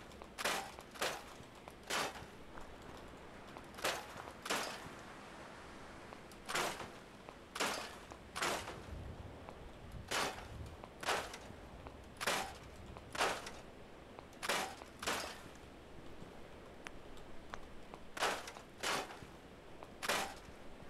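Short whooshing game sounds play again and again as objects are picked out and scrapped.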